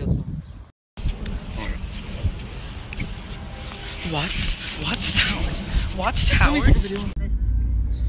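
A boy talks close by, with animation.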